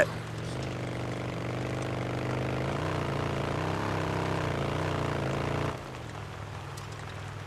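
A motorcycle engine rumbles steadily, its pitch rising and falling, then drops off as it slows.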